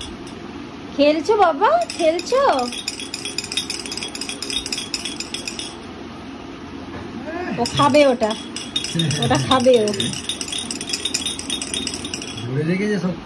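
A baby's rattle shakes with quick, light clicks.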